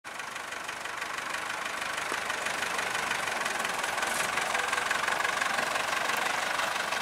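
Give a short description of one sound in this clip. An old threshing machine rattles and whirs steadily, growing slightly louder.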